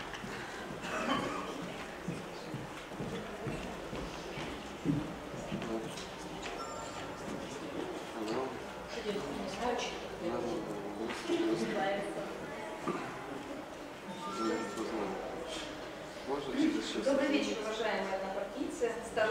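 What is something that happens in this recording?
A middle-aged woman speaks calmly into a microphone, heard over loudspeakers in a large hall.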